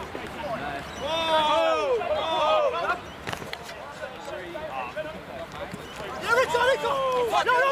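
Young men shout loudly to each other outdoors on an open field.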